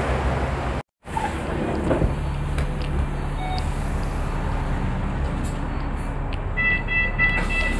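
A bus engine hums steadily from inside the moving bus.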